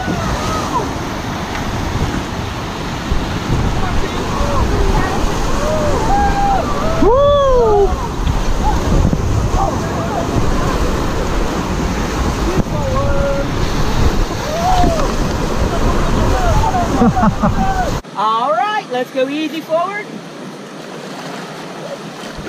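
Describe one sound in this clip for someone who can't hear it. Young men and women shout and whoop excitedly over the roaring water.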